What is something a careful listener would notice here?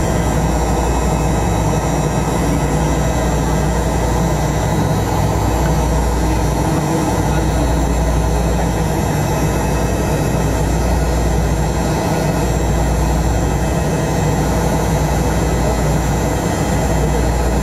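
Jet engines roar steadily from inside an airliner cabin as it taxis.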